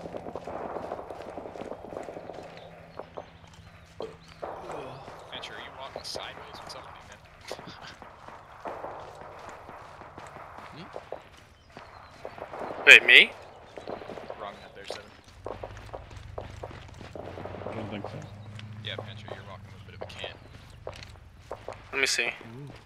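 Footsteps crunch quickly over dry grass and gravel.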